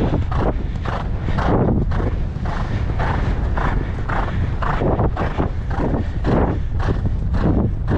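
A horse gallops with rhythmic hoofbeats on soft sand.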